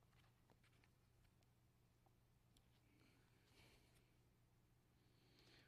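Pages of a book rustle as they turn.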